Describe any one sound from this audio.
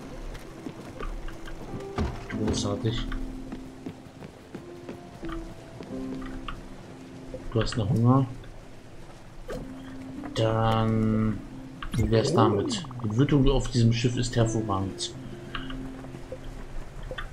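Gentle game music plays.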